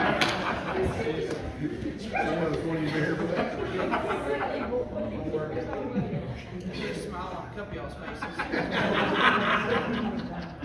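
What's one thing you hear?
A young man speaks steadily into a microphone in an echoing hall.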